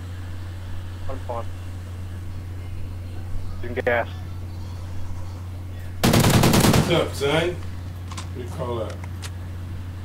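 A man speaks in short bursts, close to a microphone.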